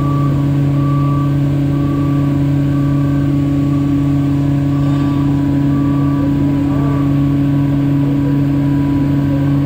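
An overhead crane motor hums steadily.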